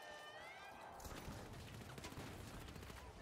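A second explosion booms and rumbles.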